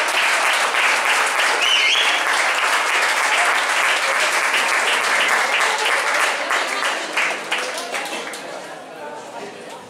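An audience claps loudly, then the applause fades away.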